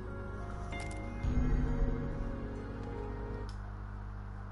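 Soft game music plays with a low hum, then cuts off.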